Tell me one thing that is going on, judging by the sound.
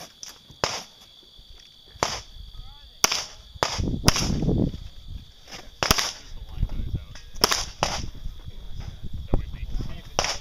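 Gunshots crack out sharply outdoors, one after another.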